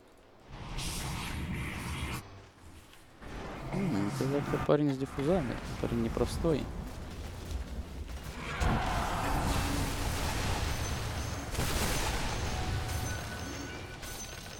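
Game spell effects crackle and whoosh.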